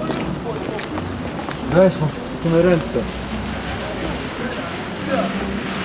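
Footsteps walk along a paved path outdoors.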